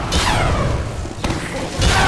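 Heavy gunfire rattles in rapid bursts.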